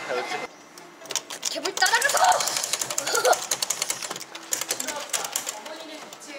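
Arcade buttons click and tap rapidly.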